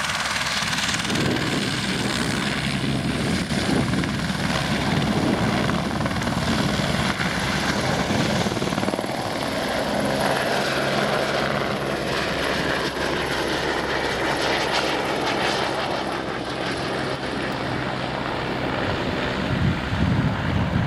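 A helicopter's rotor thumps loudly as it lifts off and flies away.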